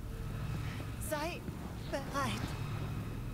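A woman speaks quietly.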